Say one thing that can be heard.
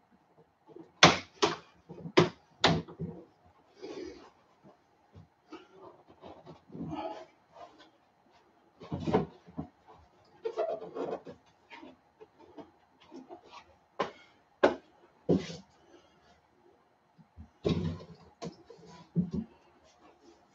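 Plastic drawers clatter and knock.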